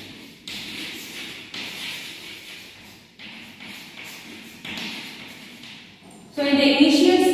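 Chalk scrapes and taps on a chalkboard.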